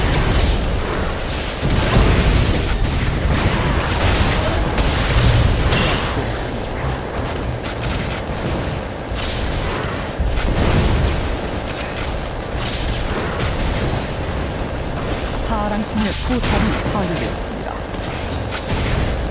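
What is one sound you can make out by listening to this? Spell blasts and impacts crackle and boom again and again in a fast game fight.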